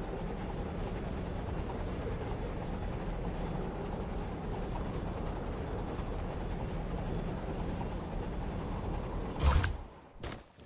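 Wind rushes steadily past.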